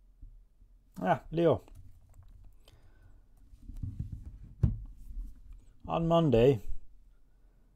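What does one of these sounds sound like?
A man speaks in short bursts, close by.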